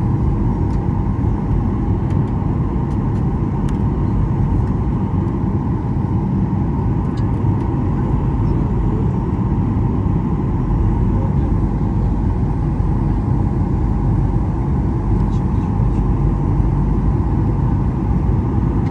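A jet engine roars loudly and steadily, heard from inside the cabin.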